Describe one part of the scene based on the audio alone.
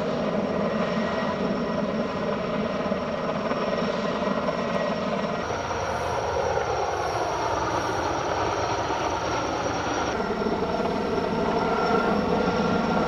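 A helicopter's rotor thuds loudly overhead.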